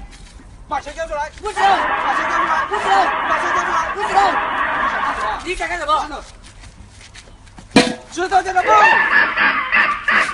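Young men laugh and shout close by.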